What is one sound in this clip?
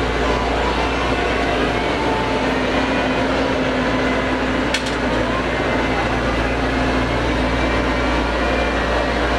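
A diesel engine rumbles steadily as a wheeled digger drives slowly along a road.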